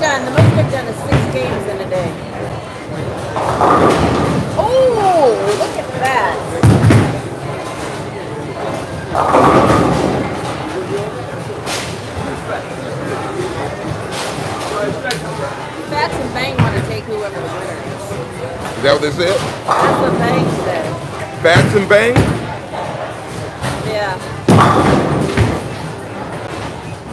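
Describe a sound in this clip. Bowling balls rumble down lanes in a large echoing hall.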